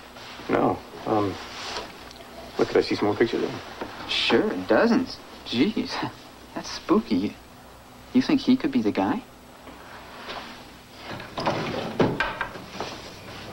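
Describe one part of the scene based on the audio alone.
A young man talks back with animation.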